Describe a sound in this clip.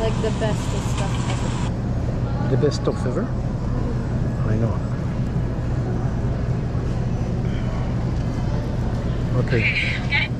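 A shopping cart rattles as its wheels roll over a hard floor.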